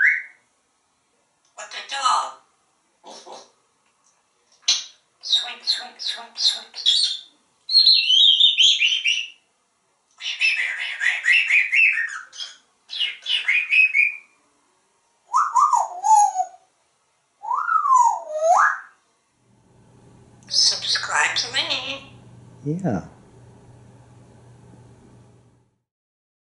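A parrot talks in a human-like voice, close by.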